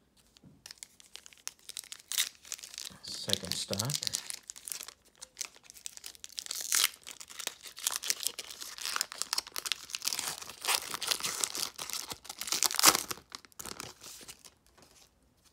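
A foil wrapper crinkles and tears as hands pull it open.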